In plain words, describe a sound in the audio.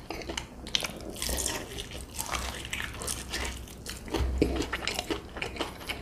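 A man chews loudly and wetly close to a microphone.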